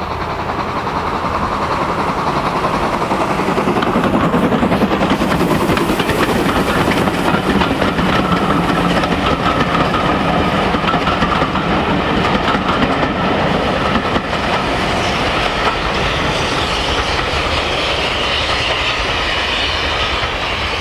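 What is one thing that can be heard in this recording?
A steam locomotive chuffs hard as it approaches and passes close by.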